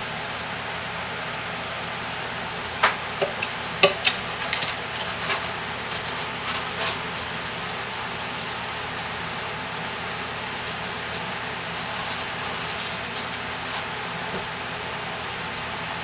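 A spoon scrapes and squelches through thick, sticky paste.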